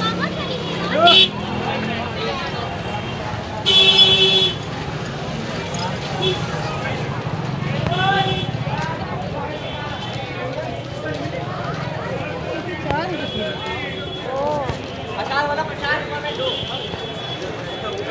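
Horns beep in the traffic now and then.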